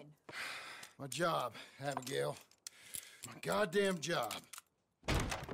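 A man answers in a low, gruff voice.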